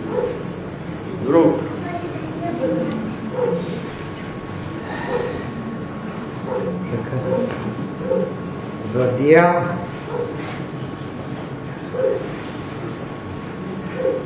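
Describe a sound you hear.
A young person reads aloud in a calm voice in an echoing hall.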